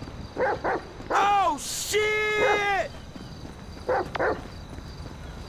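Footsteps run over a rocky dirt path.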